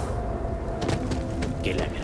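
A fire crackles in a brazier.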